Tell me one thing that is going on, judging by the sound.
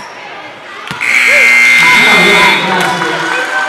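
A loud buzzer sounds in a large echoing hall.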